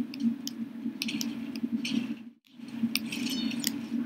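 A short bright chime rings as a fruit is collected.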